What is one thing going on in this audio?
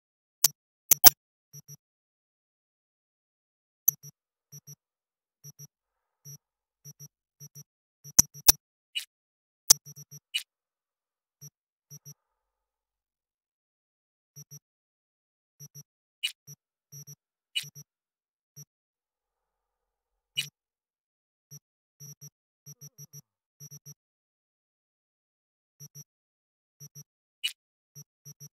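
Sharp electronic clicks snap now and then.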